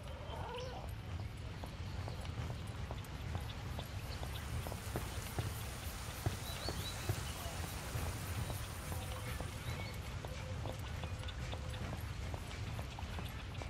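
Footsteps walk softly across a floor.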